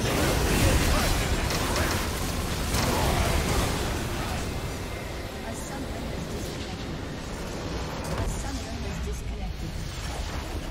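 Game spells blast and crackle in a busy battle.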